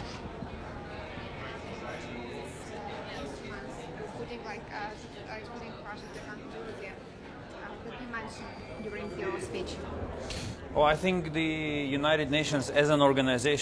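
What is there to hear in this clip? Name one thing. A crowd murmurs and chatters nearby in a large hall.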